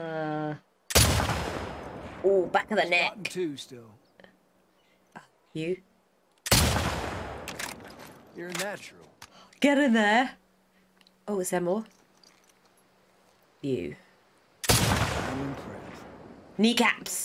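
A rifle fires loudly with a booming echo.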